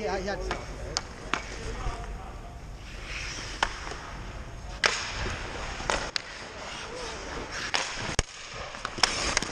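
Hockey sticks clack against a puck on ice.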